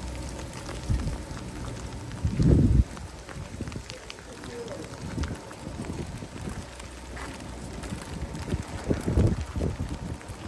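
Wind gusts roughly outdoors.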